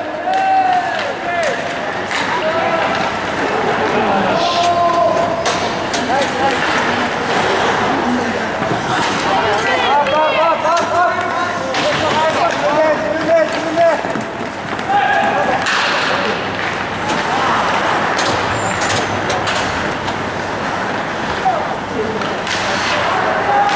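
Spectators, men and women, shout and cheer nearby in an echoing hall.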